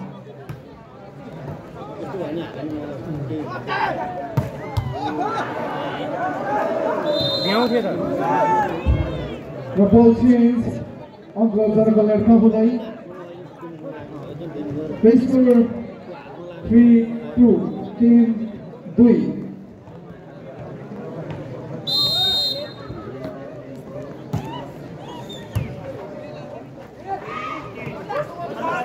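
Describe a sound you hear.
A ball is struck with sharp thumps.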